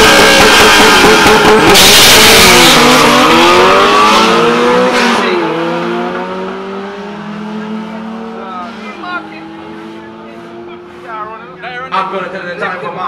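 A race car engine roars as the car launches hard and speeds away, fading into the distance.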